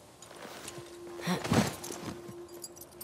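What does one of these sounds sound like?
A horse snorts loudly.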